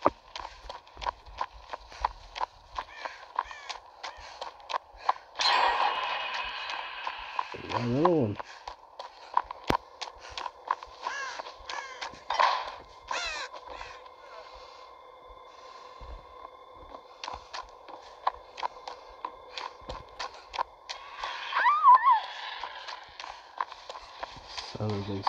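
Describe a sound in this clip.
Footsteps run over the ground.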